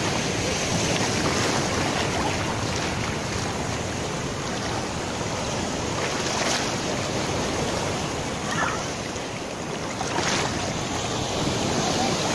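Small waves wash and break steadily close by.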